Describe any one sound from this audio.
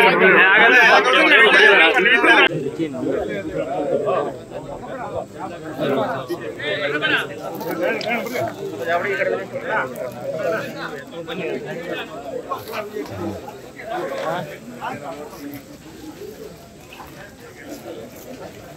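Many men talk and call out over each other in a jostling crowd.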